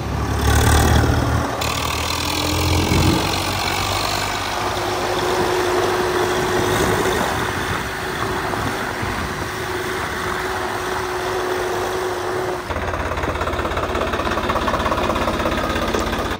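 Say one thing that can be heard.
A tractor's diesel engine chugs steadily as it drives close by.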